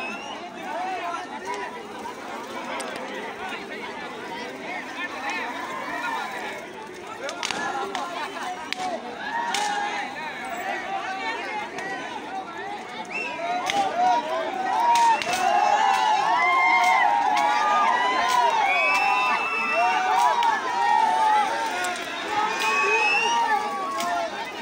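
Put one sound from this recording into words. A big bonfire crackles and pops.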